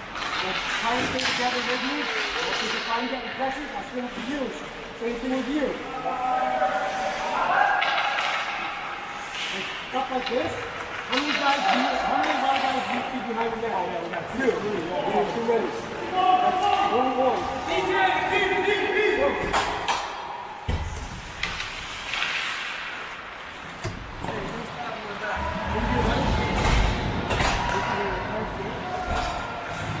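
Hockey sticks clack against a puck and the ice.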